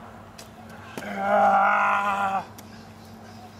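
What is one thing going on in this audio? A young man shouts loudly outdoors.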